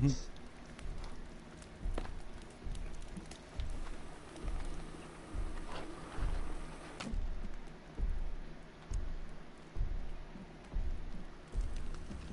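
Footsteps thud steadily on wooden planks.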